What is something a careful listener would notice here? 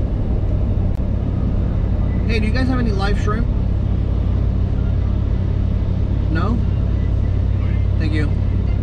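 A car engine hums steadily with road rumble from inside.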